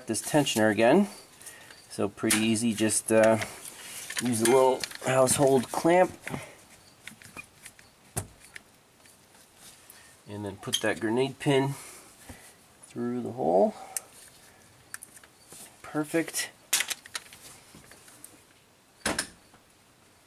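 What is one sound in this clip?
Metal tools clink and scrape against an engine part.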